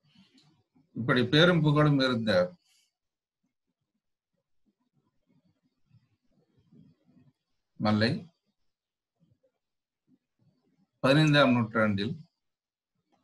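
An elderly man speaks calmly into a microphone in short bursts with pauses.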